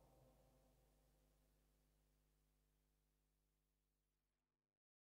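A synthesizer plays a low, humming chord that slowly fades away.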